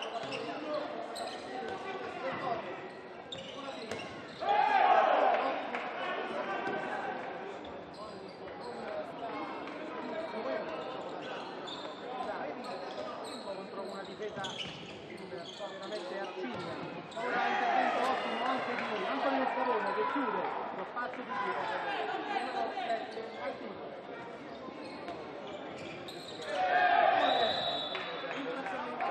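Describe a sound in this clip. A crowd murmurs and cheers in a large echoing hall.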